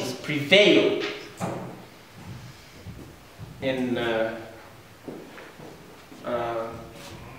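A middle-aged man speaks with animation in a room with a slight echo.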